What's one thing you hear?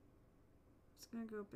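A young woman speaks briefly into a nearby microphone.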